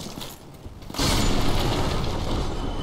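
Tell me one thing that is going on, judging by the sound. A sword swings through the air.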